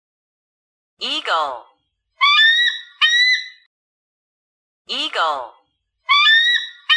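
A hawk gives harsh, piercing screeches.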